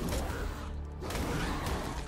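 A large beast growls and snarls as it attacks.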